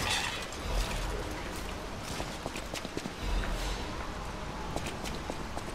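Footsteps tread on hard stone ground.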